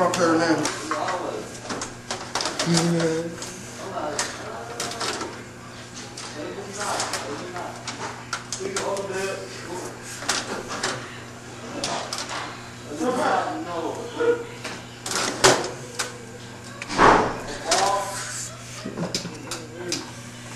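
An elderly man talks with animation, close by.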